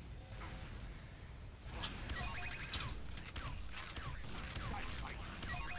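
Gunfire and explosions crackle from a battle.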